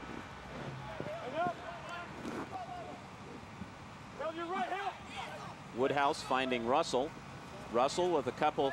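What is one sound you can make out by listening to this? Young men shout loudly outdoors.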